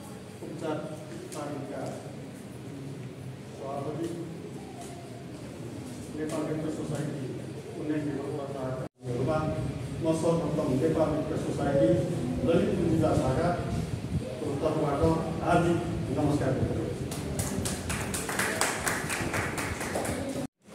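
A middle-aged man speaks calmly to a small group.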